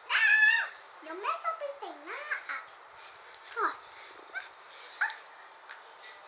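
A young girl talks and squeals playfully close by.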